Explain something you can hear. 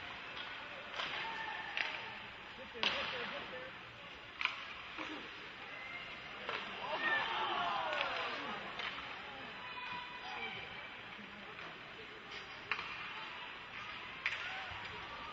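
A hockey stick clacks against the puck.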